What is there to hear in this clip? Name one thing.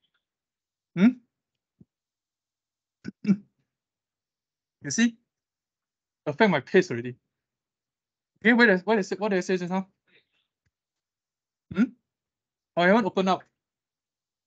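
A young man speaks calmly into a microphone in short bursts.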